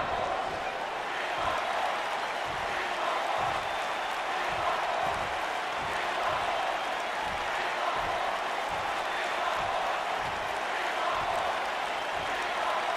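A large crowd murmurs and cheers steadily in a big echoing arena.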